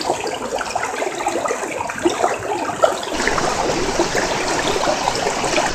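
A stream of water splashes and gurgles over rocks.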